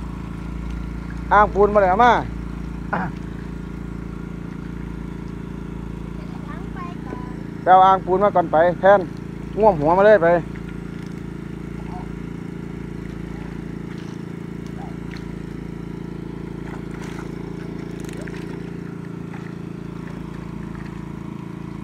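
Fish splash and thrash in shallow water.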